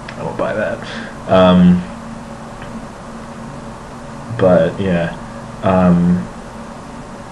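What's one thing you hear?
A young man speaks casually and close to a microphone, with pauses.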